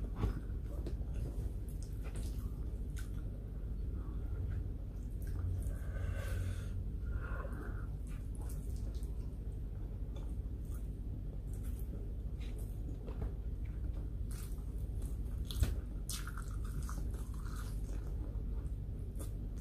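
A woman chews food noisily close to the microphone.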